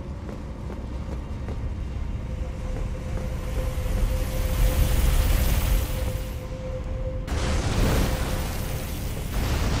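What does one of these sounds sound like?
Heavy footsteps scuff slowly over stone in a dim, echoing space.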